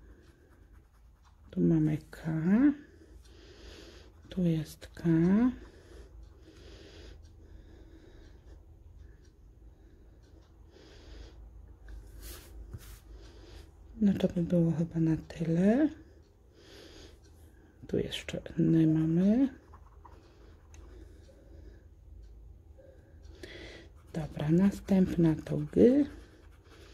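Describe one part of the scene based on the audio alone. A pen scratches and taps on a card.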